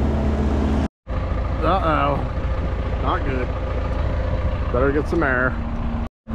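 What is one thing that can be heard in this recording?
A tractor engine idles nearby.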